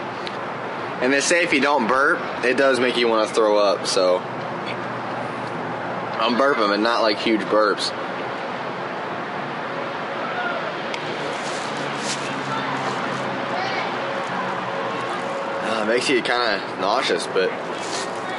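A young man speaks to a nearby microphone in short bursts.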